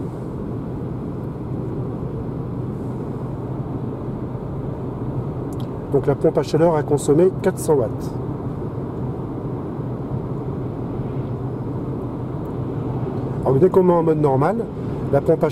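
A car hums and rumbles steadily as it drives along a road.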